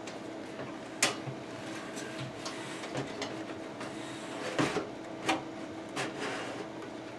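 A metal drive scrapes and clicks into a computer case.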